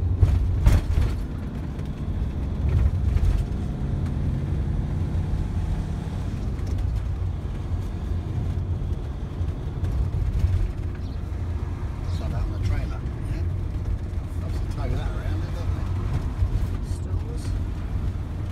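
A car engine rumbles steadily as the car drives along a road.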